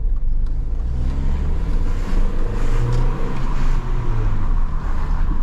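A car engine revs up, its pitch rising and falling as the car accelerates.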